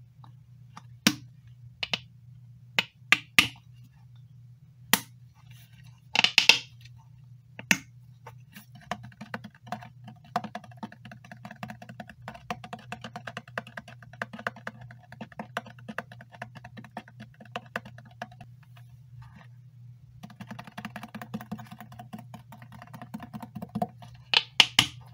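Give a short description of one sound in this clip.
A plastic bottle clicks and taps as it is handled.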